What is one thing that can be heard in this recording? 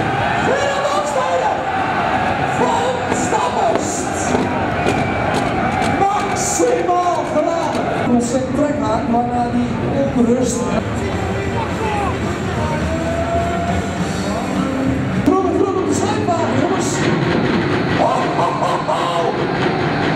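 A man talks with animation into a microphone, heard over loudspeakers in a large echoing hall.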